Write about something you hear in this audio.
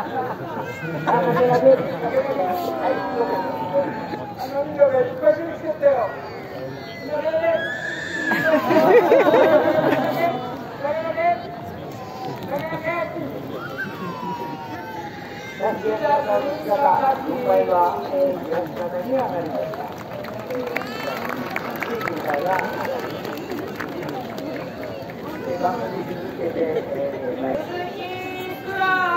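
Babies wail and cry loudly.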